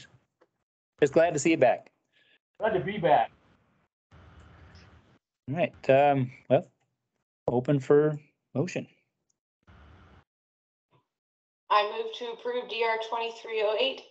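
A man speaks calmly over an online call, in short phrases.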